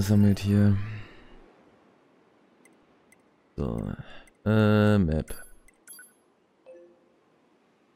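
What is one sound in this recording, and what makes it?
Short electronic menu tones blip as selections change.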